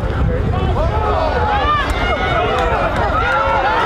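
Football players' pads clash as they collide.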